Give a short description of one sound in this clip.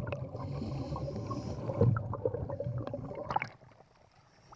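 Water rumbles and gurgles, muffled from underwater.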